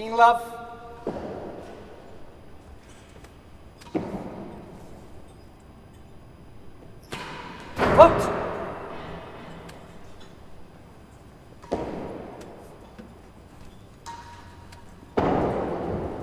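A ball is struck hard by a racket and echoes around a large hall.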